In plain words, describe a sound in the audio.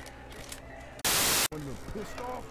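Loud static hiss bursts briefly.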